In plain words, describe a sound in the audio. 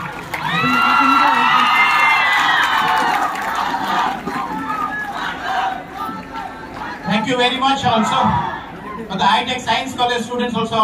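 A large crowd talks and murmurs outdoors.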